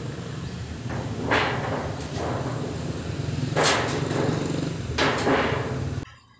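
Metal sheeting knocks and clatters against a plastic tub.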